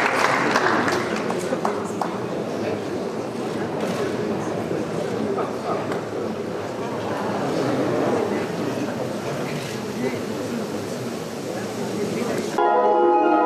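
A large crowd of men and women murmurs and chatters.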